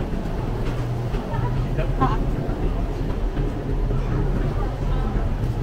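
A refrigerated display case hums steadily.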